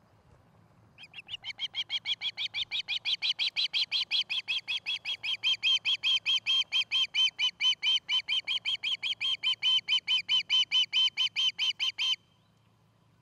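An osprey calls with rapid, shrill, repeated chirps close by.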